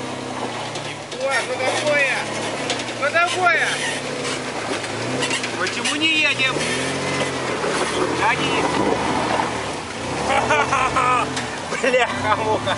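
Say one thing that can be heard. An engine revs up and down repeatedly as a vehicle pushes through mud.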